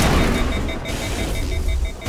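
An electric explosion crackles.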